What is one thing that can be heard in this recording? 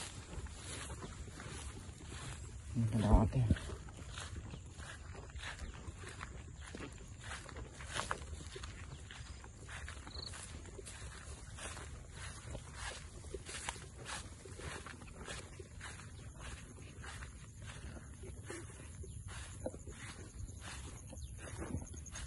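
Footsteps swish and rustle through tall dry grass.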